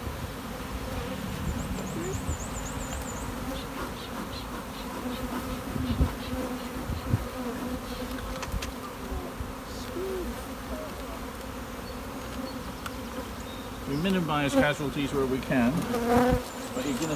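Bees buzz steadily around an open hive.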